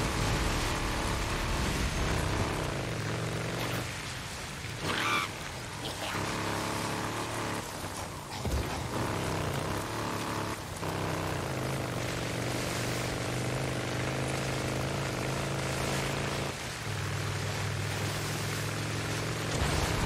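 A motorcycle engine hums steadily and rises and falls in pitch as the bike rides along.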